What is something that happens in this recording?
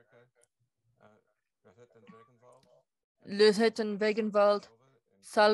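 A middle-aged man speaks calmly into a headset microphone, heard over an online call.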